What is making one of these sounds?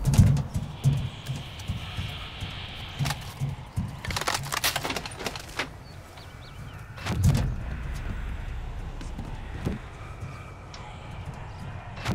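Footsteps thud steadily on a tiled roof.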